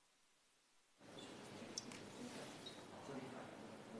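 A man sits down heavily on a chair, which creaks.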